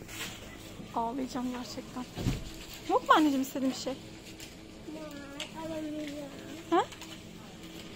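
A young girl talks excitedly nearby.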